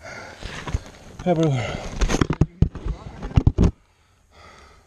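Leaves and dirt rustle and scrape as a person scrambles up off the ground.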